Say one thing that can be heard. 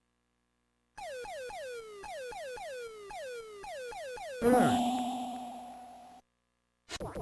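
A video game plays a series of falling electronic tones.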